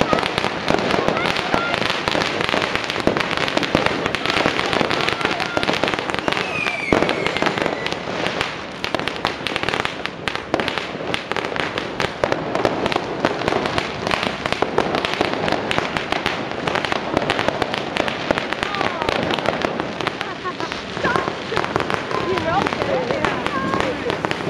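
Fireworks crackle and bang all around, over and over.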